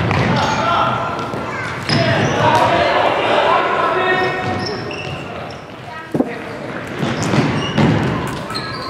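Young men shout to each other, echoing in a large hall.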